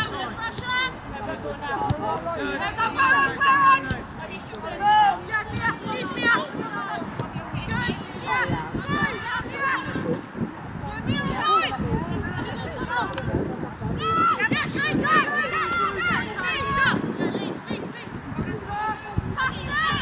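Young women shout calls to each other across an open outdoor pitch.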